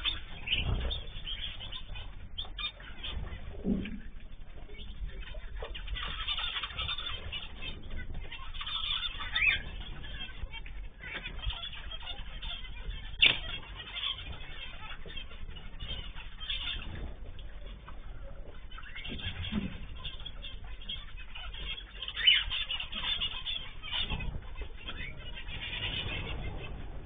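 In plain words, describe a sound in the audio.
Small birds chirp and twitter throughout.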